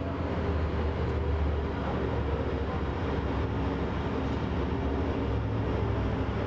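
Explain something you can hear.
An ice resurfacing machine hums steadily in a large echoing rink.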